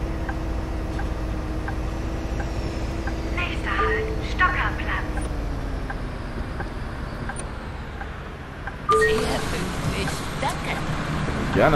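A bus engine hums steadily at low speed.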